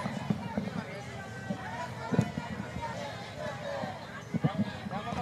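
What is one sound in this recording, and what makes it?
A crowd of women shouts and chants loudly outdoors.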